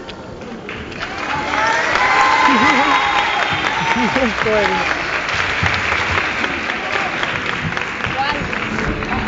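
A crowd applauds loudly in a large echoing hall.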